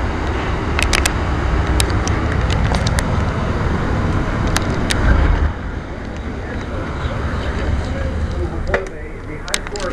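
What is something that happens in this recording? A finger rubs and taps against the microphone.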